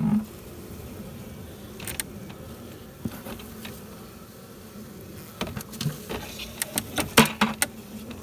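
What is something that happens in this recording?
Bees buzz softly close by.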